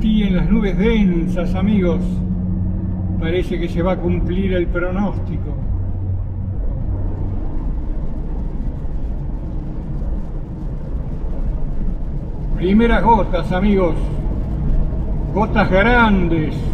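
A car drives steadily along a road with a low rumble.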